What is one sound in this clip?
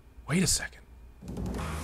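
A man speaks briefly into a microphone, close up.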